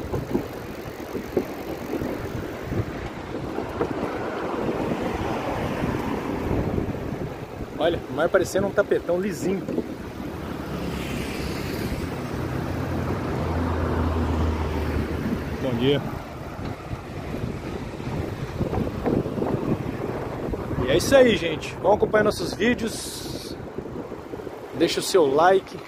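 Waves wash gently onto a beach.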